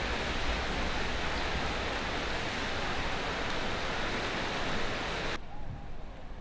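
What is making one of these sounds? Swimmers splash and churn the water.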